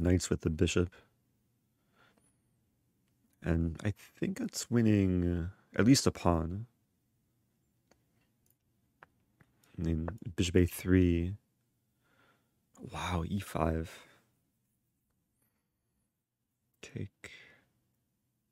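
A young man talks calmly and thoughtfully into a close microphone, with pauses.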